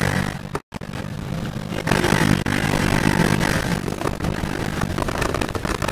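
Car tyres screech through corners.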